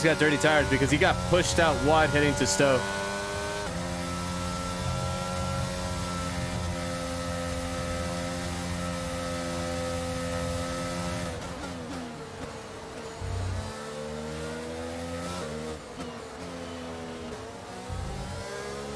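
A racing car engine roars steadily, then drops in pitch as the car slows.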